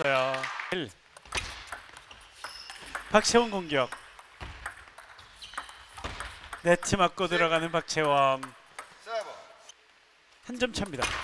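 A table tennis ball clicks sharply off paddles and the table in a quick rally.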